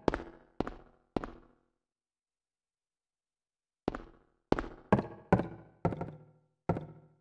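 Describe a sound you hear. Footsteps thud slowly and echo on hard stairs and floor.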